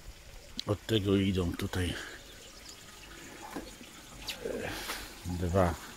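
Water trickles steadily from a pipe into a barrel.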